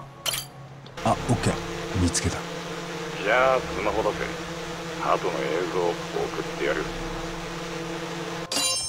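A drone hums and whirs steadily.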